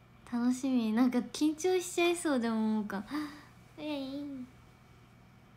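A young woman talks brightly close to a microphone.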